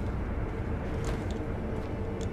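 Something thuds onto a tiled roof.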